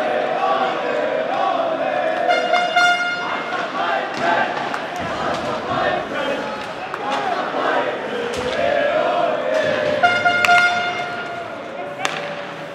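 Ice hockey sticks clack against a puck.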